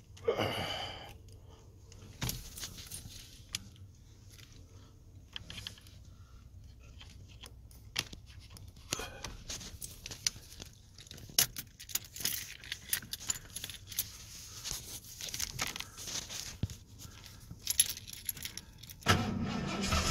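Keys jingle in a hand.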